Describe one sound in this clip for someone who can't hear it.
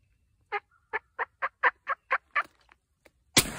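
A turkey clucks in a quick series of sharp calls.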